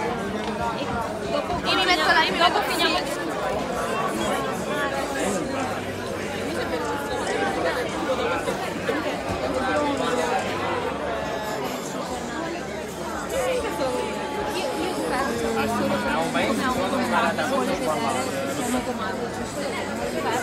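A crowd of people chatters all around in a large indoor room.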